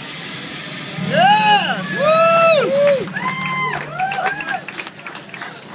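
An electric guitar plays loud, wailing notes that bend up and down.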